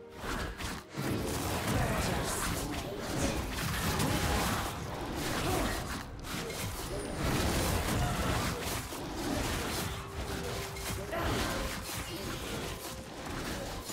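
Sword strikes and magic blasts clash in a fight with a monster.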